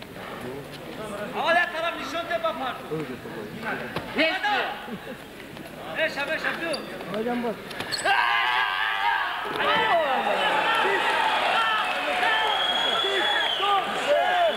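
A crowd of men shouts and cheers loudly.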